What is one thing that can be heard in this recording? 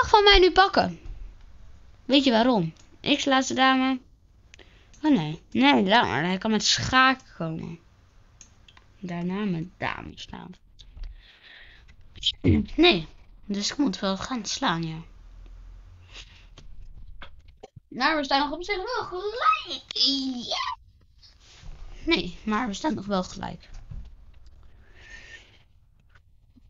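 A boy talks with animation into a close microphone, in bursts with short pauses.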